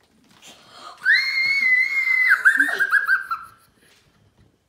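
A young child squeals with excitement.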